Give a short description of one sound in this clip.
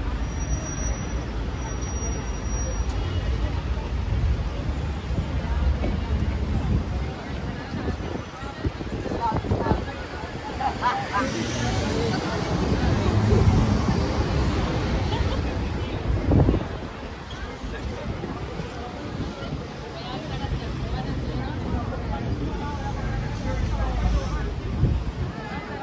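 Road traffic rumbles past steadily outdoors.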